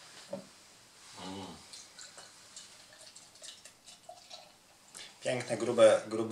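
Beer pours from a bottle into a glass.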